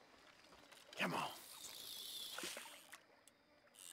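A fishing line whizzes out as a rod is cast.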